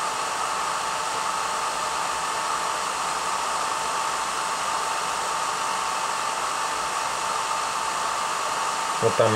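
A button clicks softly as a finger presses it.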